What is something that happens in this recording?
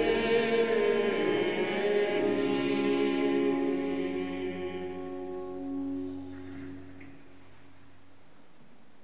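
Men sing a slow chant together in a large echoing hall, then fall silent.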